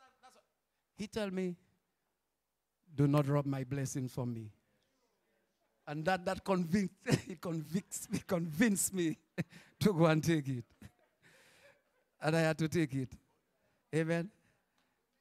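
A man preaches with animation through a microphone and loudspeakers.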